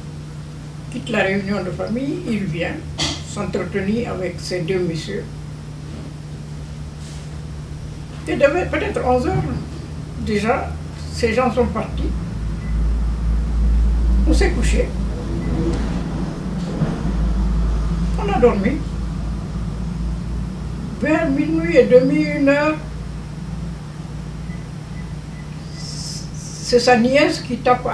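An elderly woman speaks calmly and slowly, close by, with pauses.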